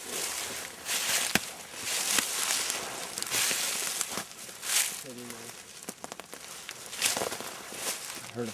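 Footsteps crunch and rustle through dry leaves and undergrowth.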